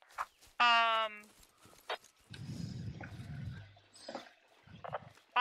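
Boots of a marching squad tramp over grass.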